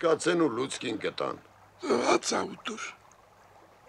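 An elderly man speaks in a raised voice nearby.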